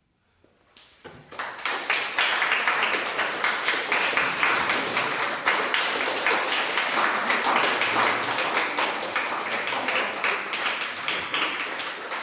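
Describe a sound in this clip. An audience applauds loudly in an echoing room.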